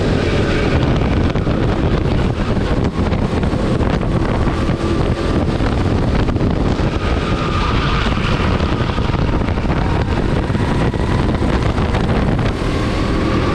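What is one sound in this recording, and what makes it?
A kart engine roars loudly and close, revving up and down.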